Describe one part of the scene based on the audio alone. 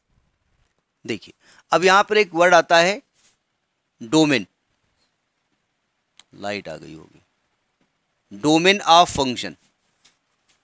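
An adult man speaks calmly into a close microphone, in short phrases with pauses.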